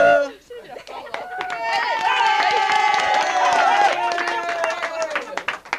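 A group of young women laugh and cheer.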